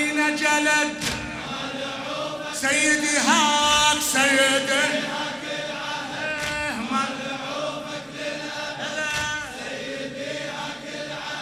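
A crowd of men beats their chests in rhythm.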